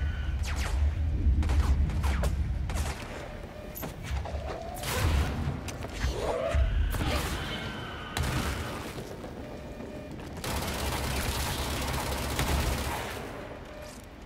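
Explosions boom loudly in a video game.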